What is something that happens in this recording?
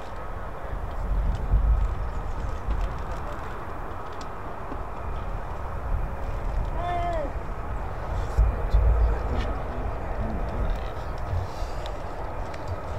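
Wind gusts and rumbles across an open outdoor space.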